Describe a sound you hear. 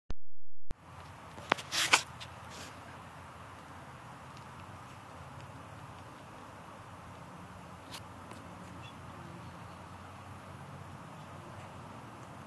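A turtle's hind legs softly scrape and scoop loose soil.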